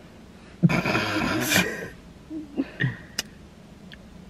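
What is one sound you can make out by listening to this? A young woman laughs, close by.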